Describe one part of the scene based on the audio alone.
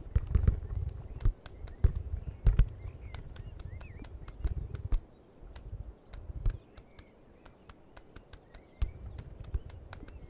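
Small webbed feet patter quickly on pavement.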